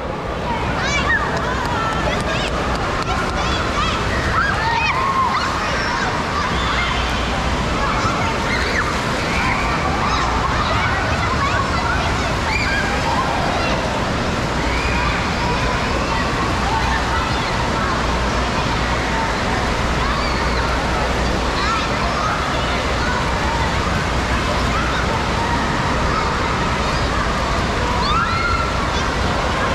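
Water splashes as children thrash about in a pool.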